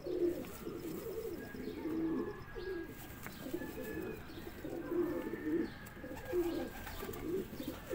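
Feathers rustle softly as a bird's wing is spread.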